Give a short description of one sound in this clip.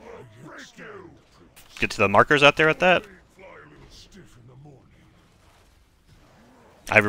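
Spell effects whoosh and burst during a fight.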